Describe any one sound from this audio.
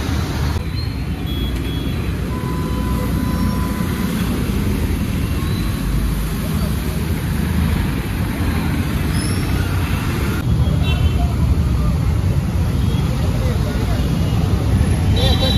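Engines rumble as vehicles drive through floodwater.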